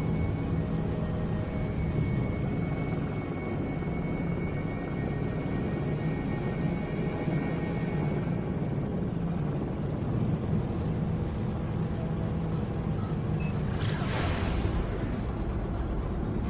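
A spaceship engine hums and roars steadily.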